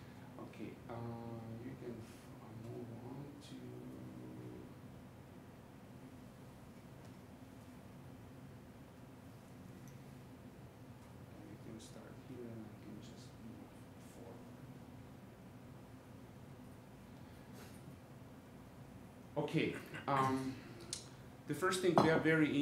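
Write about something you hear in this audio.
A man speaks calmly, with pauses.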